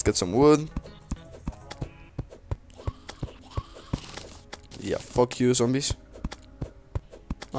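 A pickaxe strikes the ground in quick, steady blows.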